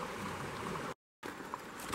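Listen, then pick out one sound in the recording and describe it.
Water ripples over stones in a river.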